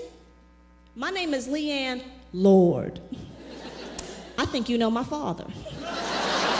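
A woman speaks animatedly into a microphone.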